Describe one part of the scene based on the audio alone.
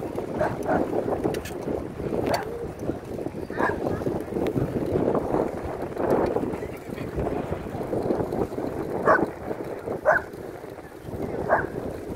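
Bicycle tyres roll over smooth pavement.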